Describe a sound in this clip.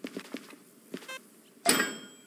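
A handheld radio beeps briefly.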